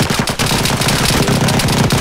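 Gunshots ring out in a small wooden room.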